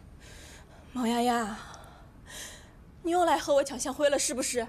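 A young woman speaks sharply and close up.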